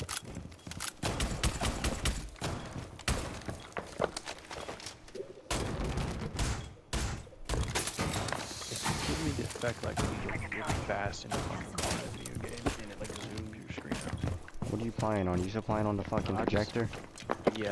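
Footsteps thud quickly on wooden floors.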